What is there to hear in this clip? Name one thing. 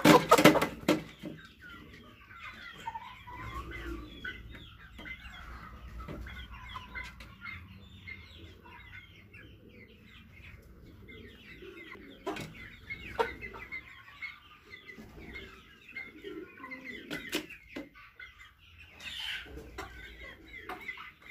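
Hens cluck and chirp softly all around.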